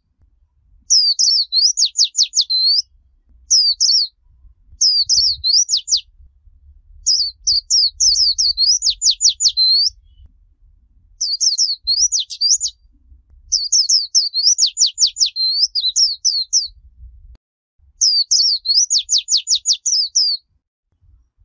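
A small bird sings close by in quick, high chirping bursts with short pauses between them.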